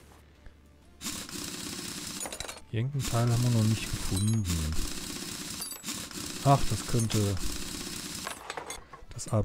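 An impact wrench whirs as wheel nuts come off.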